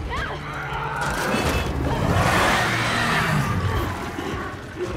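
A monster lets out a loud, rasping roar close by.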